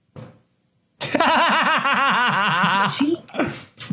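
A young man laughs loudly through a microphone.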